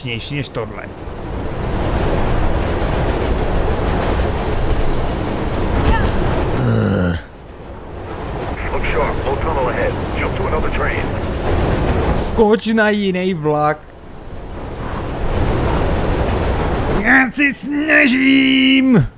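A train rumbles and rushes through an echoing tunnel.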